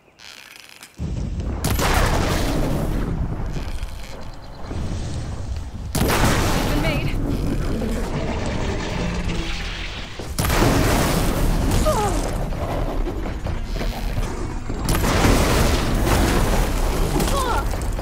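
Large mechanical beasts clank and stomp nearby.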